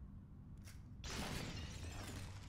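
A gunshot cracks nearby.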